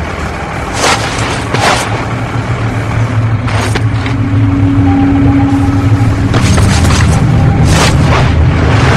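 Feet land with heavy thuds on rubble.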